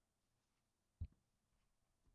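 A soft toy thumps down on a table.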